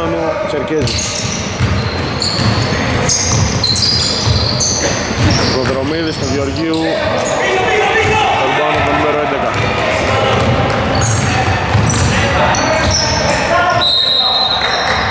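Men shout and call out to each other across the court.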